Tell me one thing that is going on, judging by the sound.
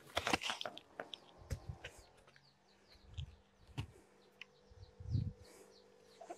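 A hoe scrapes and thuds into dry soil.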